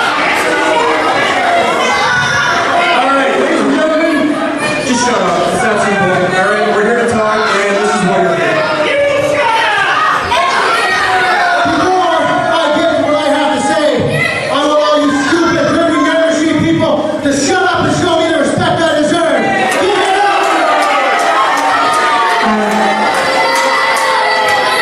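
A man announces loudly through a loudspeaker in a large echoing hall.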